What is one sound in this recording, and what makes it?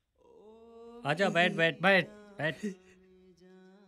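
A young man speaks loudly at close range.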